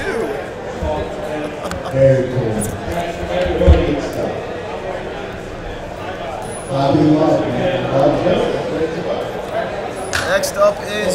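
Plastic card cases click and clatter as hands handle them.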